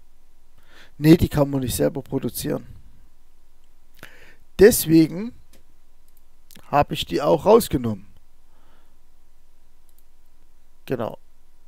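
A man speaks calmly into a close microphone in short bursts.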